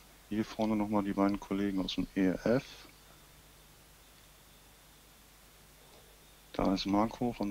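A man speaks with animation close by, outdoors.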